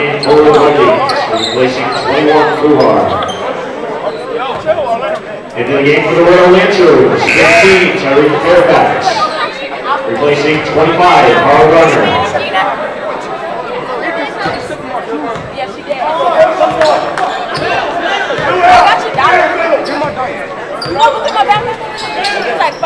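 A crowd cheers and chatters in an echoing gym.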